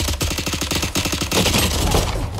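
A rifle fires in a rapid burst of gunshots.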